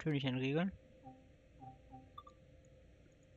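Short soft electronic beeps sound.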